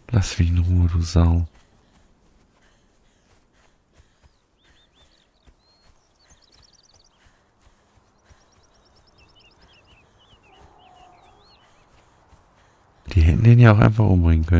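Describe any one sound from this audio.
Footsteps run through tall grass and over rough ground.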